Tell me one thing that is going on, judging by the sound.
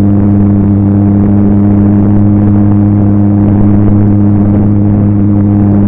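A model airplane engine drones loudly and steadily up close.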